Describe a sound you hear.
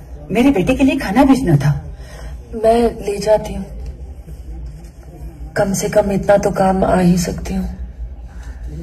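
A woman speaks calmly nearby.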